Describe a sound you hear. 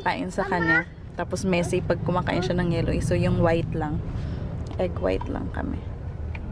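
A young child talks close by in a high voice.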